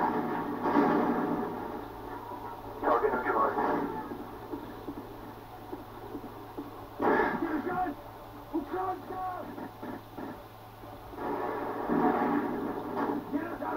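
Gunshots from a video game ring out through a loudspeaker.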